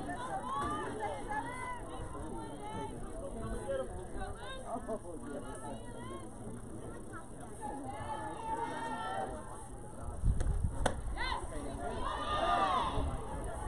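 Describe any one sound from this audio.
Young women chant and cheer loudly outdoors.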